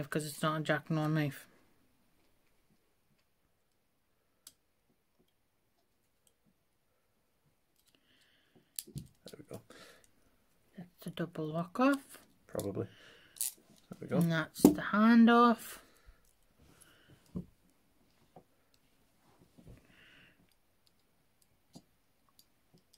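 Metal handcuffs click and rattle.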